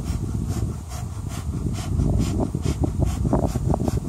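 A bee smoker puffs in short bursts.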